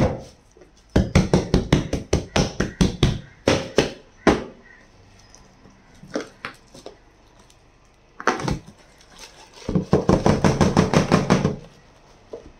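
Hands pat and tap rapidly on a plastic tray.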